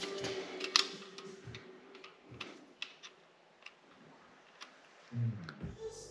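Metal clicks and taps lightly.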